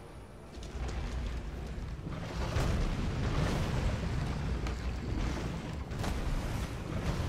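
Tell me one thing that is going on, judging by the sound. A heavy wooden door grinds and rumbles slowly open.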